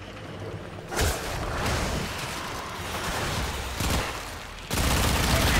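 A burst of energy crackles and blasts as a game figure attacks.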